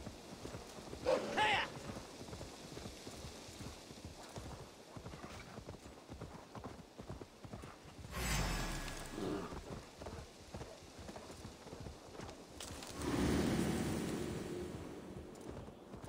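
Horse hooves thud steadily on soft ground.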